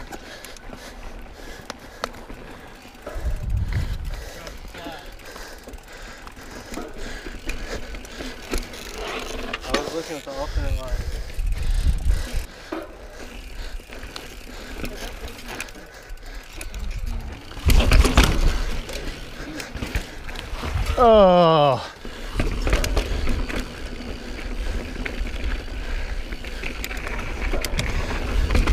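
A bike's chain and frame rattle over bumps.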